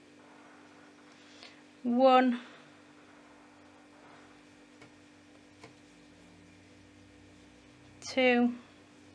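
A crochet hook softly rasps through yarn.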